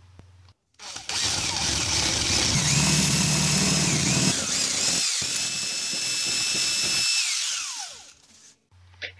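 A cordless drill whirs loudly as it bores through wood.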